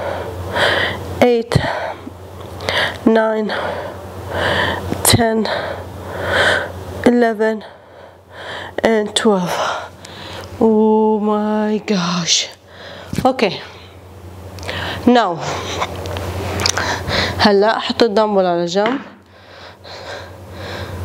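A young woman talks calmly to the listener, close by.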